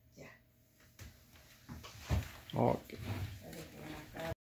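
A woman laughs and talks with animation close by.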